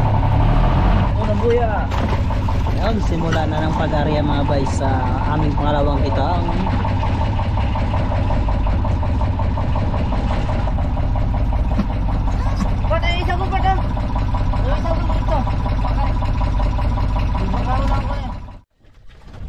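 Men talk casually nearby over the engine.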